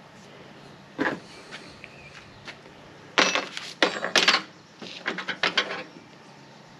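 Metal parts click and rattle as they are handled close by.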